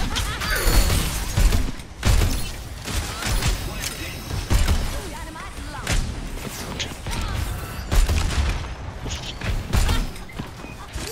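A gun fires in quick bursts with heavy thumps.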